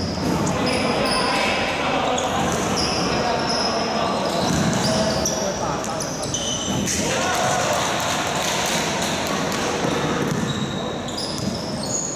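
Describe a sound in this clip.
A basketball is dribbled on a wooden floor.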